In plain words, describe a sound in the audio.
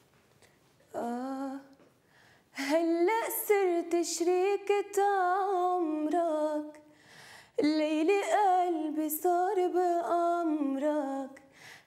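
A young woman sings expressively into a nearby microphone.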